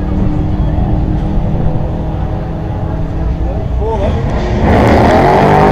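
A racing car engine idles with a deep rumble.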